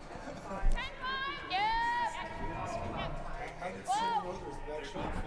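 A woman shouts loud calls across an echoing rink.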